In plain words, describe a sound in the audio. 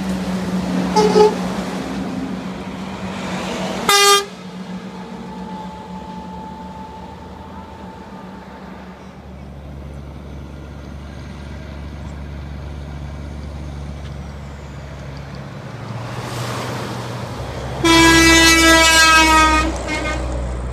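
A large truck blasts its air horn loudly.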